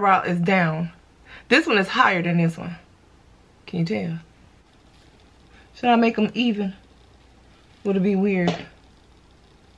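A young woman talks casually and close up, in short bursts with pauses.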